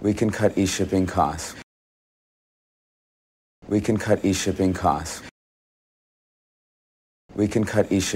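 A young man speaks calmly, in short repeated phrases with silent pauses between.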